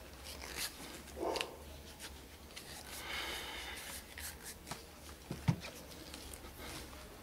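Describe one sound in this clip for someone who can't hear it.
Hands rub and scrape at a leather shoe.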